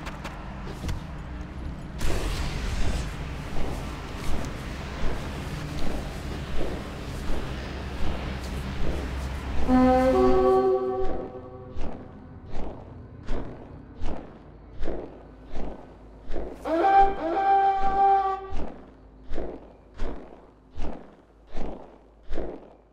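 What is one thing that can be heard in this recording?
Large wings flap in a steady rhythm.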